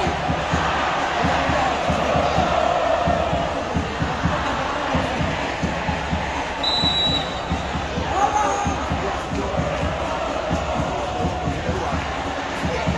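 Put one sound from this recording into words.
A large stadium crowd chants and cheers loudly outdoors.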